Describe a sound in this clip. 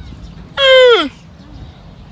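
A young camel lets out a short, loud bleat that falls in pitch.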